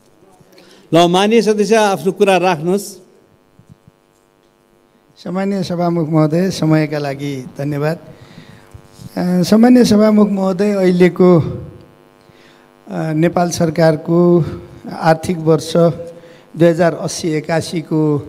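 A middle-aged man speaks steadily into a microphone, with short pauses.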